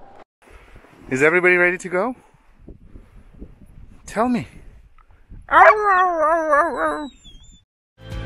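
Dogs howl and whine nearby outdoors.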